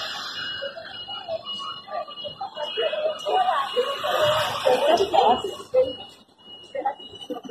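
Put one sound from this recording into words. A crowd of men and women talks and shouts nearby outdoors.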